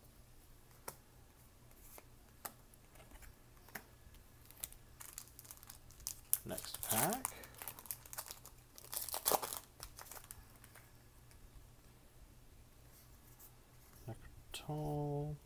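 Playing cards shuffle and slide against each other in hands.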